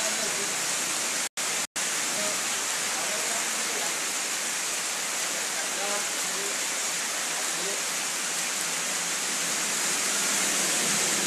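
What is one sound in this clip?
A man talks quietly at a short distance.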